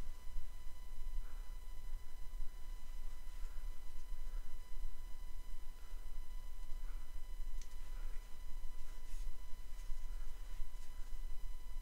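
Small spring clamps click as they are squeezed open and released.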